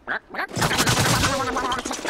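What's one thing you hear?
A small explosion bursts.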